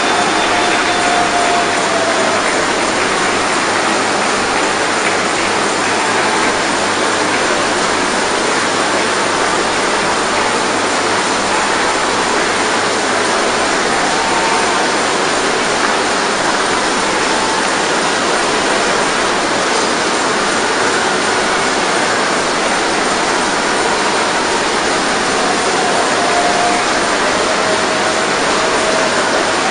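A large crowd prays and calls out loudly together in a big echoing hall.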